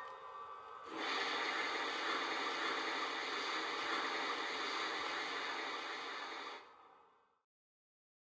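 A model steam locomotive hisses loudly and steadily.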